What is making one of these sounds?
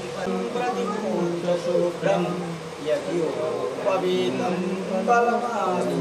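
A man chants prayers in a steady voice.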